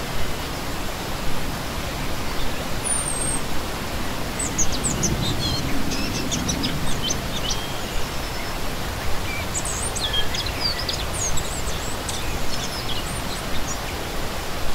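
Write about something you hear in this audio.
A shallow stream splashes and gurgles steadily over rocks.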